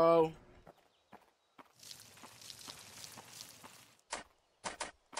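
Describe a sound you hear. Footsteps crunch on soft soil.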